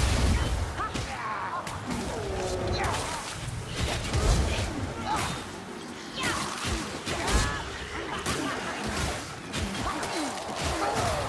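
Blades slash and hack into enemies in quick, repeated blows.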